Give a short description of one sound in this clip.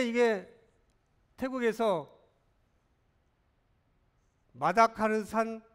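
A man lectures calmly through a microphone, with pauses between phrases.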